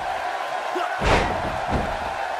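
A wrestler slams heavily onto the mat with a loud thud.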